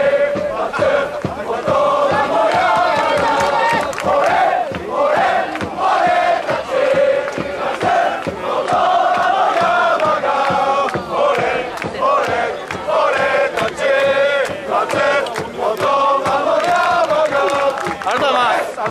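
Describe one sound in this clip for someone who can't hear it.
A large crowd sings a chant together outdoors.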